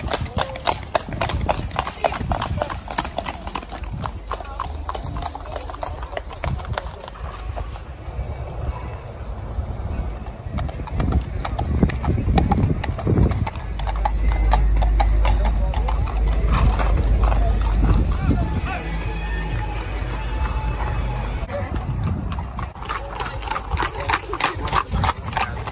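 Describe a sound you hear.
Horse hooves clop on a road.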